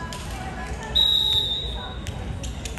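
A referee's whistle blows a short sharp blast in a large echoing gym.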